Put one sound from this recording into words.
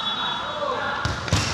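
A player kicks a ball with a thud.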